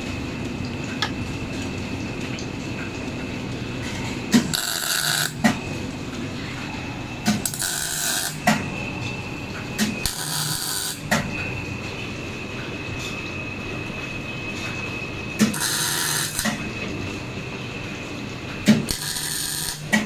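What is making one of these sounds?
Metal tools click and clank against engine parts.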